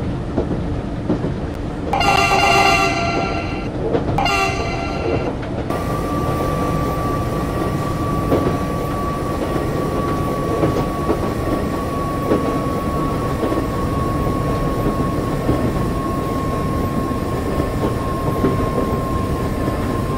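An electric commuter train rumbles along the rails.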